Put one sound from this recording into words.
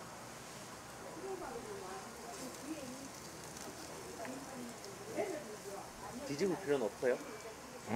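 Food sizzles softly in a hot frying pan.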